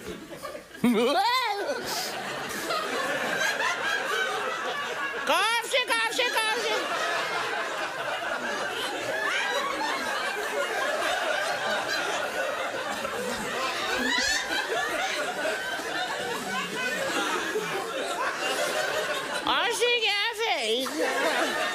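An audience laughs loudly in an echoing hall.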